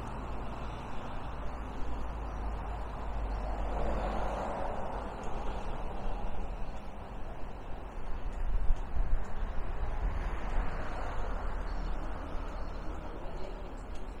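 Tyres roll along a paved path.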